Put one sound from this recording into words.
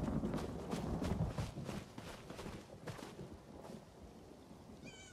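Footsteps patter steadily across grass and stone.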